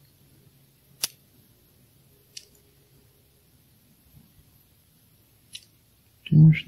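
A slider phone clicks as it slides open and shut.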